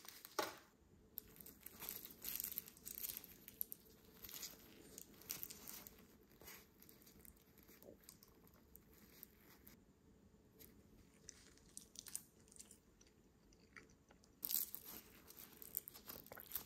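Soft sticky candy pieces squish and rustle.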